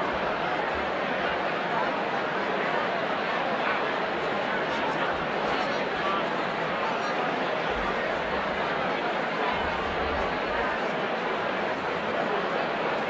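A large crowd of men and women chatter all at once in a busy, echoing hall.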